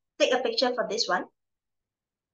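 A woman speaks briefly and clearly into a microphone, heard as in an online lesson.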